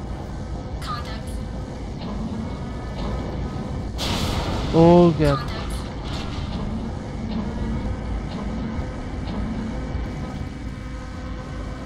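A heavy machine rumbles and hums steadily.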